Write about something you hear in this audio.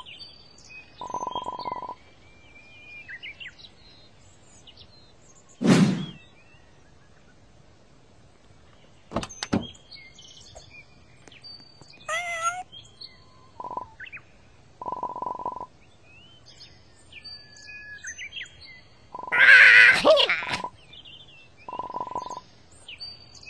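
A short electronic buzzing tone sounds in bursts.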